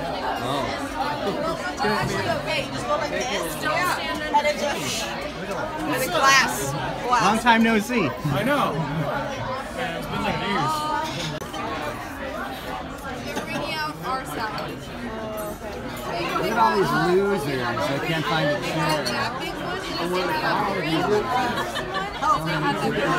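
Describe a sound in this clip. A crowd of adults chatters and laughs.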